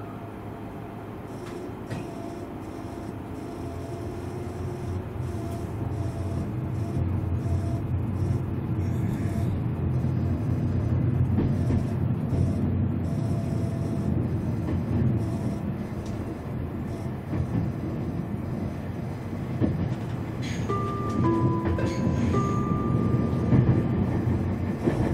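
A train rumbles steadily along the tracks, slowly growing louder.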